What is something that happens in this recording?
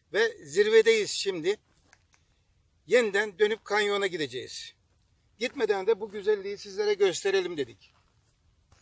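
An elderly man talks calmly and clearly, close by, outdoors.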